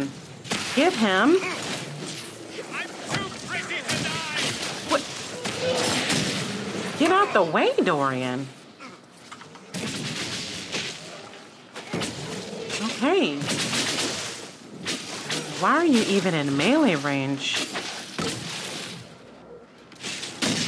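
Magic blasts whoosh and crackle.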